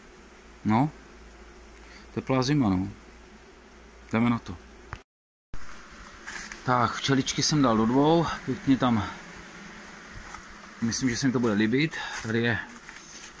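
Bees buzz softly around open hives.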